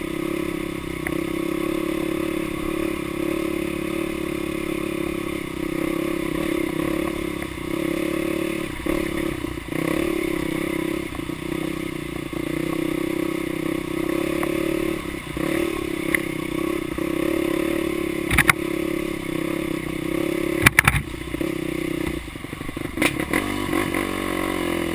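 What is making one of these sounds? A dirt bike engine drones steadily up close, rising and falling with the throttle.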